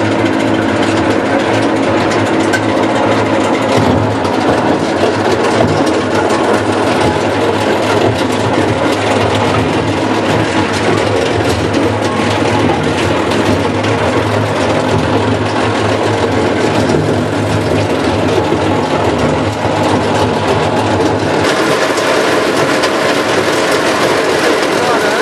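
Chunks of bark rattle and tumble inside a rotating drum.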